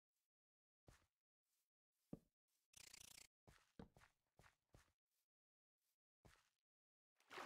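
Blocks thud as they are placed and broken.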